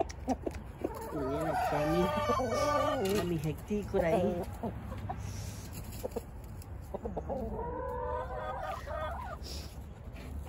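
A rooster crows loudly nearby.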